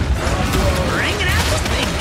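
A laser beam crackles loudly.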